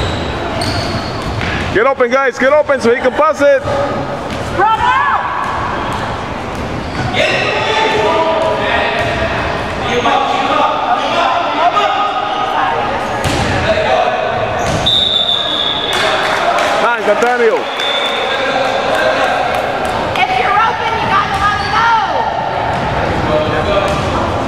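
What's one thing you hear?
A crowd of children and adults talk and call out in a large echoing gym.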